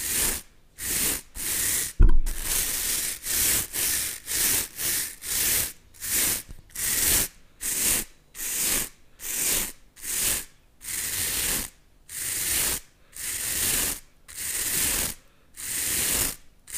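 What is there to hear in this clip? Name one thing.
Two stiff brushes rub their bristles together in quick, scratchy strokes close to a microphone.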